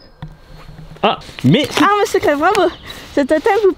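A teenage girl speaks with animation close by.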